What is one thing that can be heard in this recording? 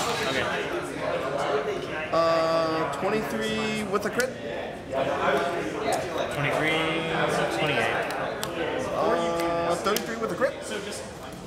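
Playing cards riffle and click as they are shuffled in hand.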